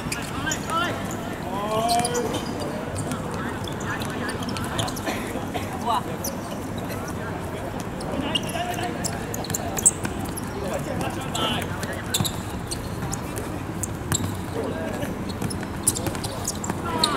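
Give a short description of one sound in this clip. A football is kicked on a hard outdoor court.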